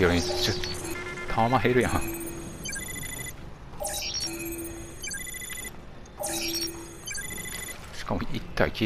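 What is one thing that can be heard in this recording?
An electronic scanner beeps and chirps repeatedly.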